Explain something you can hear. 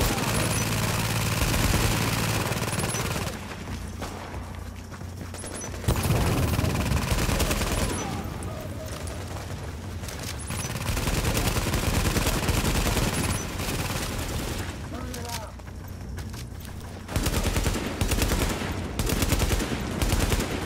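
A rifle fires shots.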